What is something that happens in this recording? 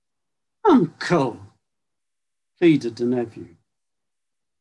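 An elderly man speaks calmly over an online call, in short bursts.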